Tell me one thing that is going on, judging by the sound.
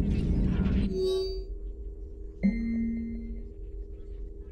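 An electronic interface chimes softly as a menu opens.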